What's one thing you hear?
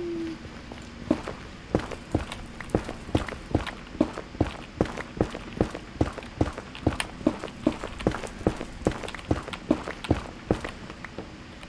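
Footsteps crunch quickly and steadily on hard stone.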